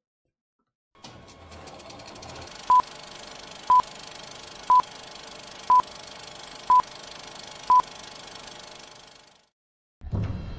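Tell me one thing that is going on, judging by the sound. Old film crackles and hisses.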